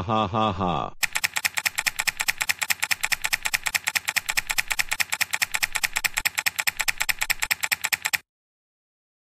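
Keys click rapidly on a laptop keyboard.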